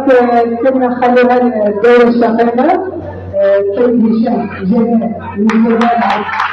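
A woman sings and ululates loudly close by.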